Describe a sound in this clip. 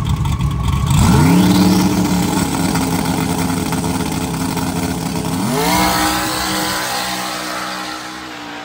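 A race car engine roars as the car launches and speeds away, shifting gears.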